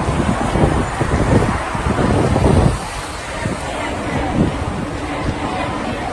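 Traffic rumbles along a street.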